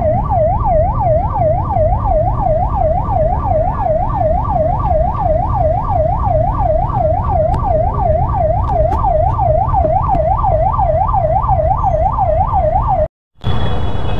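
An ambulance siren wails close by, rising and falling quickly.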